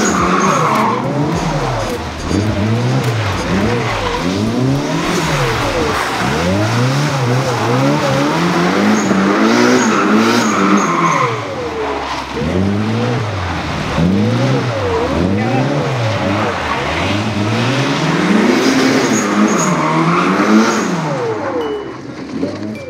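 A car engine revs hard, rising and falling over and over.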